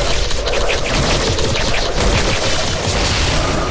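Weapons clash and strike in a rapid fight.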